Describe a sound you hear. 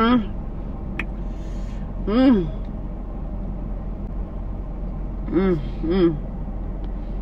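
A young woman makes short, sharp vocal sounds close by.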